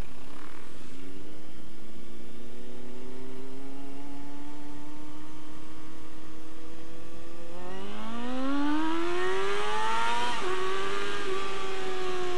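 A motorcycle accelerates hard, its engine climbing higher and louder.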